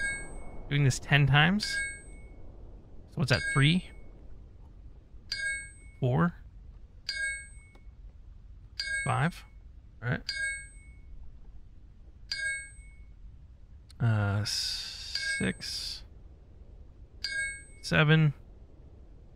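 A pickaxe strikes rock with short ringing clinks, again and again.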